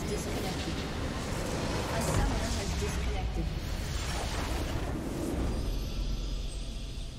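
A structure explodes with a loud, rumbling blast.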